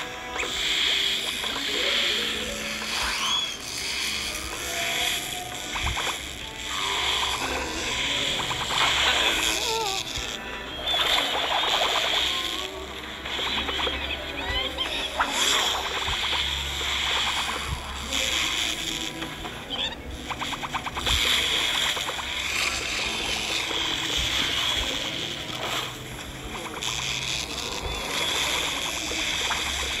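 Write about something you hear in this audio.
Game plants fire rapid zapping shots and laser beams.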